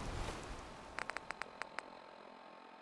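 Short electronic beeps tick in quick succession.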